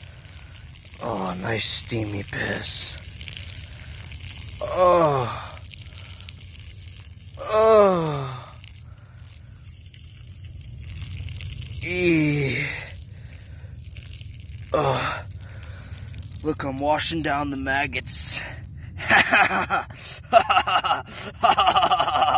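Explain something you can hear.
A stream of liquid splashes onto the ground.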